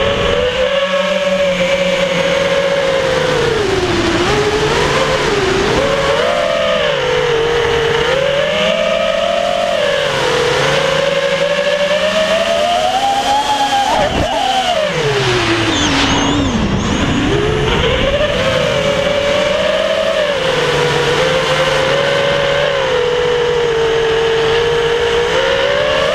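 Small drone motors whine loudly and close by, rising and falling in pitch.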